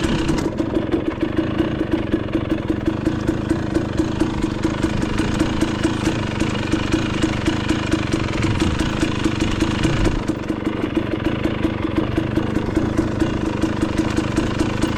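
A dirt bike engine chugs steadily up close.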